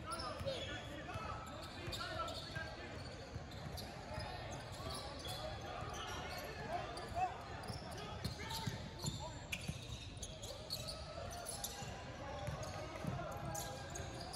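Young players shout and call out across a large echoing gym.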